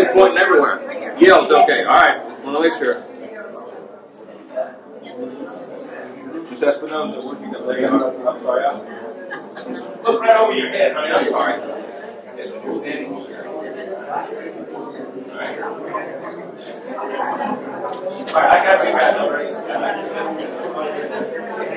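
Other men and women murmur in the background.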